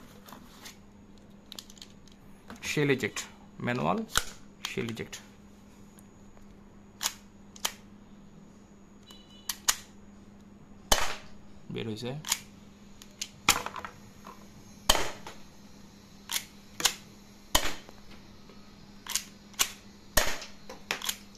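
A pistol's slide and parts click and clack sharply while handled.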